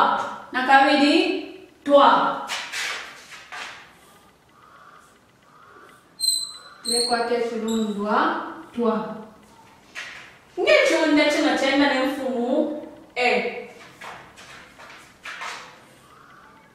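A woman speaks clearly and slowly, as if teaching, close by.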